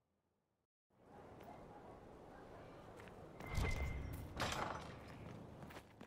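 Footsteps tread on stone outdoors.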